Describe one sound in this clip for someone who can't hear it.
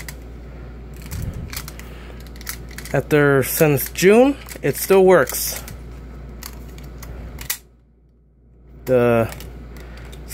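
Plastic parts of a toy click and rattle as it is moved.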